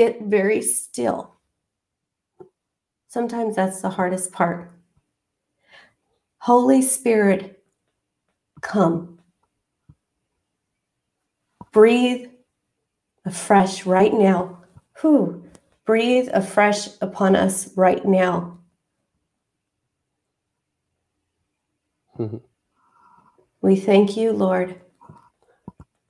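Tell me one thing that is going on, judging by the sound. A middle-aged woman speaks slowly and calmly over an online call, with pauses between phrases.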